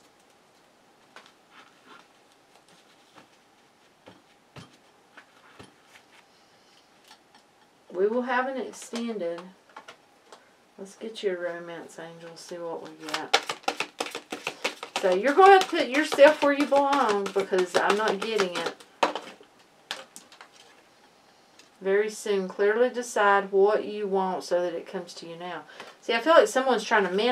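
Playing cards rustle and tap softly on a table.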